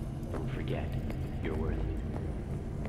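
A young woman speaks casually, close to a microphone.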